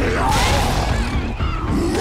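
A zombie snarls close by.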